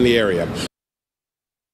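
A man speaks clearly into a microphone, then falls silent.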